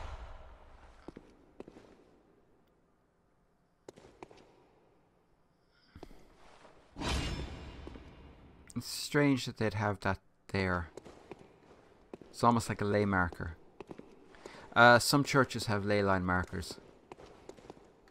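Footsteps tap on stone floor.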